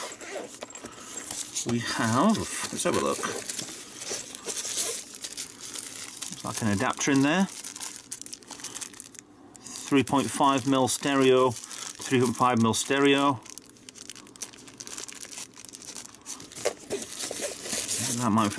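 A fabric case rustles as it is handled.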